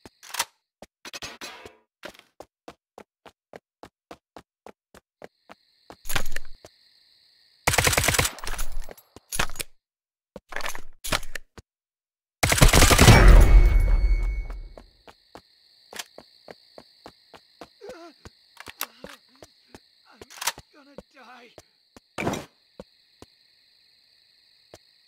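Footsteps crunch steadily on the ground.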